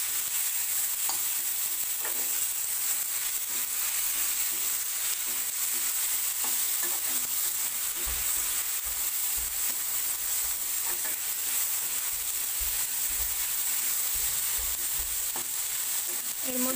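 Vegetables sizzle steadily in hot oil.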